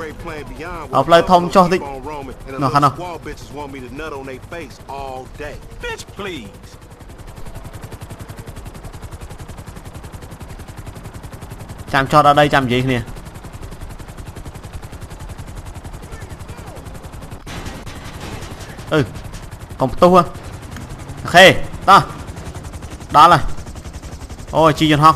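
A helicopter's rotor thuds steadily.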